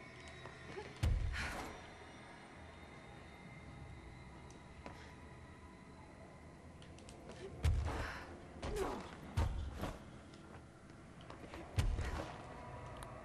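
Heavy footsteps thud and land on a hard floor.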